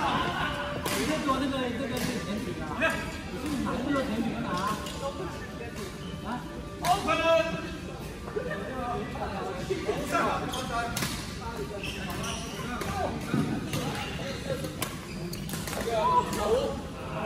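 Men talk and call out across a large echoing hall.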